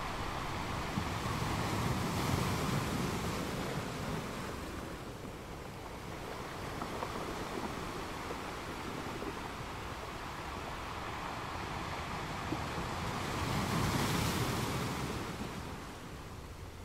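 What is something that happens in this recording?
Waves crash and break over rocks in surges.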